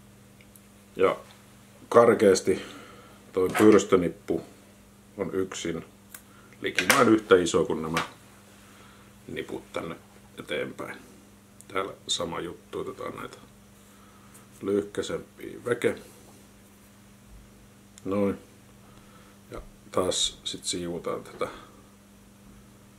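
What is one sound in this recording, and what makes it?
A man speaks calmly and close by.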